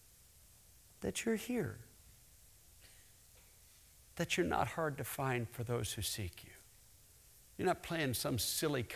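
A middle-aged man speaks with animation through a microphone in a large hall.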